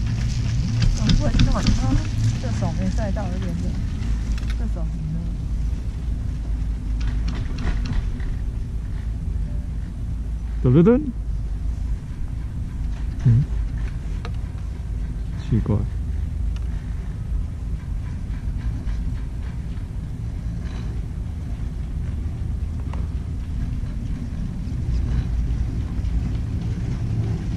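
A chairlift creaks and rattles as it moves along its cable.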